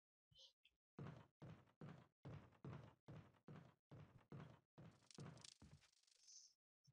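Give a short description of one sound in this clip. Footsteps run quickly across a wooden floor.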